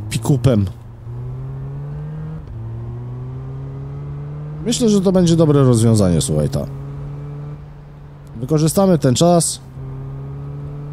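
Car engines hum steadily in slow traffic.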